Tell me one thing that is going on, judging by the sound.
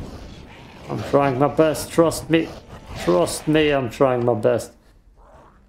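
A monster growls up close.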